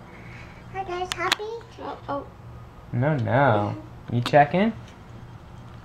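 A young girl talks excitedly close by.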